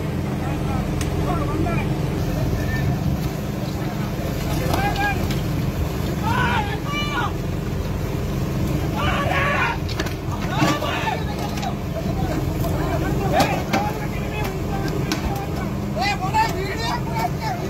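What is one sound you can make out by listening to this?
A boat engine rumbles steadily throughout.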